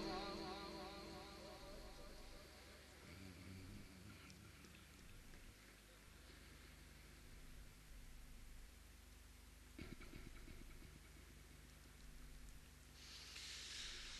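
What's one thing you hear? A crowd murmurs softly.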